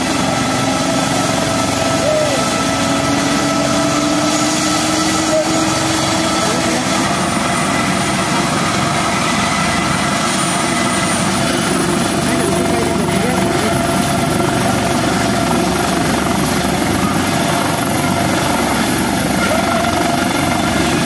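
Helicopter rotor blades thump and roar as the helicopter lifts off.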